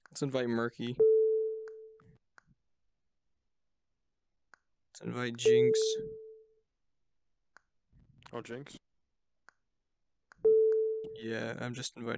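A short electronic beep sounds as a menu button is pressed.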